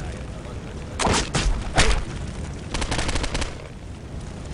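A rifle fires in short rapid bursts close by.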